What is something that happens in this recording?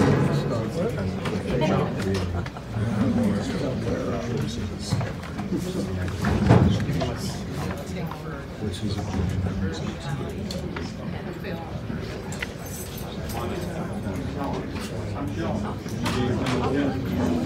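A crowd of men and women chatters nearby in a room with some echo.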